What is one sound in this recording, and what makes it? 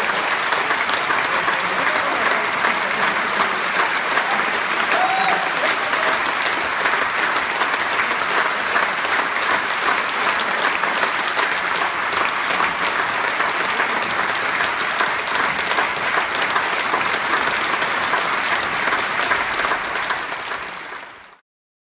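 A large audience applauds loudly in an echoing hall, then fades out.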